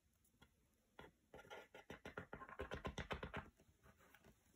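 A small tool rubs briskly across paper.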